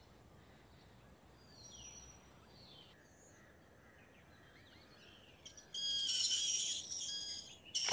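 A rope creaks over a wooden pulley.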